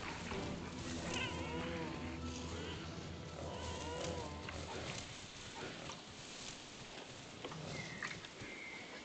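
Leaves rustle as someone pushes through thick undergrowth.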